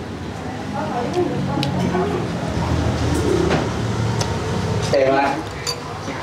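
Chopsticks and a spoon clink against a bowl.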